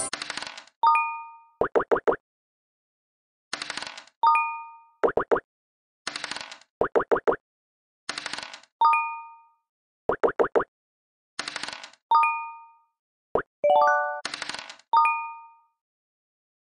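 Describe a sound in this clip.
A chime sounds as a piece lands.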